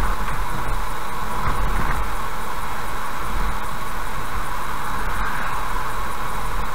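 A car's tyres roll steadily on a paved road.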